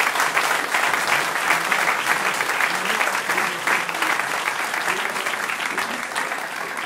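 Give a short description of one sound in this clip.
A folk ensemble strums guitars and lutes in a lively rhythm.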